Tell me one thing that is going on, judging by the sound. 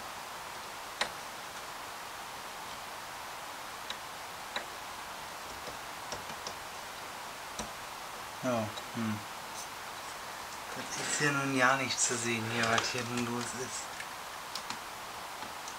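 Plastic parts click and knock as they are handled.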